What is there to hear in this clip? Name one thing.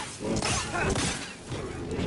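An energy blade clashes against metal with crackling sparks.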